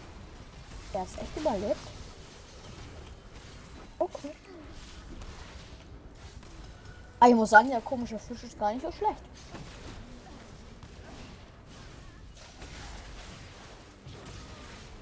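Magic spells whoosh and crackle during a fight.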